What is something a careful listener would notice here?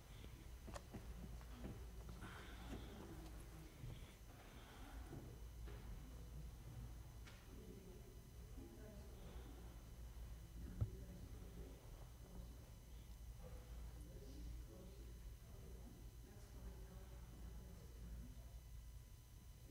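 Several women talk quietly in a large echoing hall.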